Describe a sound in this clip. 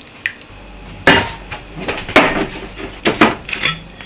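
A bottle clinks against a table.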